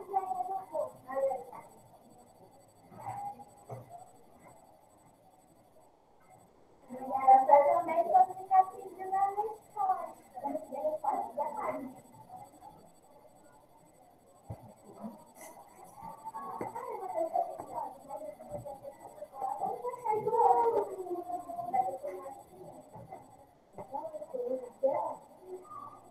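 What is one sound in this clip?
A woman talks calmly through a microphone, heard as if on an online call.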